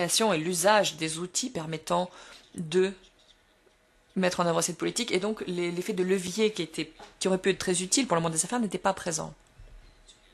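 A middle-aged man speaks calmly into a microphone in a room with a slight echo.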